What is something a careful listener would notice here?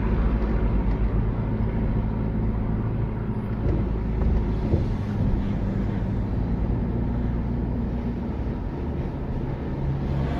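A car engine hums steadily from inside as the car drives along.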